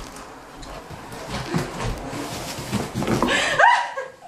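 A dog's paws scamper across the floor.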